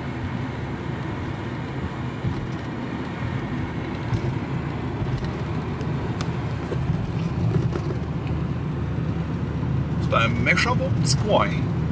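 A vehicle engine and tyres rumble steadily on the road.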